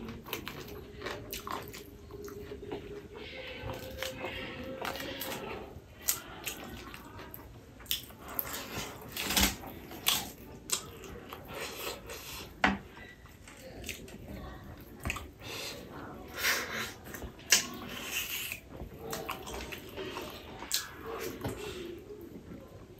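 Fingers squish and mix wet rice close by.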